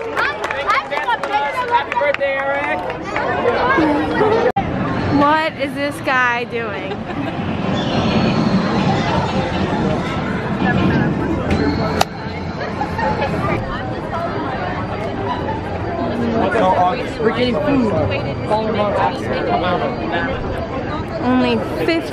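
A crowd chatters and calls out nearby outdoors.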